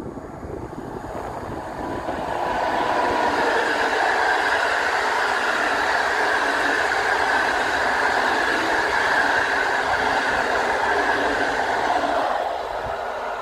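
A passenger train rumbles past close by, its wheels clattering on the rails.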